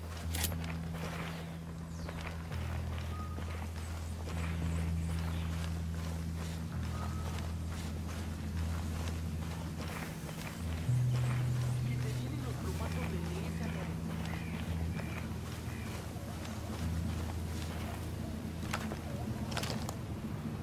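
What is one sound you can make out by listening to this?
Footsteps rustle through dense leafy brush.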